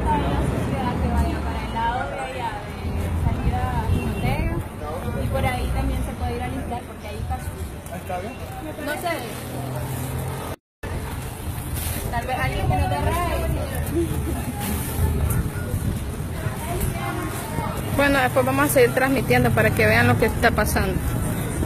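Women talk excitedly close by in a crowd outdoors.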